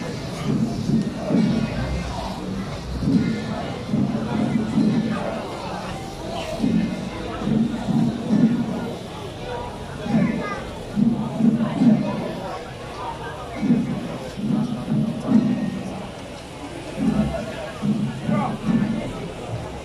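A crowd chatters and murmurs outdoors.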